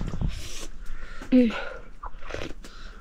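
A woman slurps a drink.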